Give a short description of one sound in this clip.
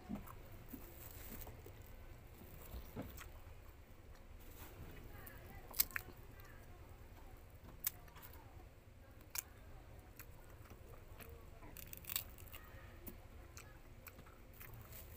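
Spiky fruit husks rustle and crackle between fingers.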